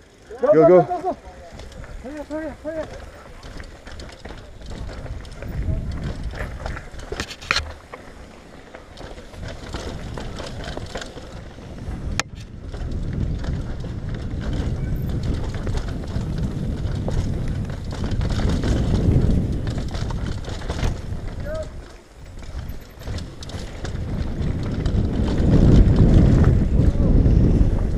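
Bicycle tyres roll and crunch over a dirt trail.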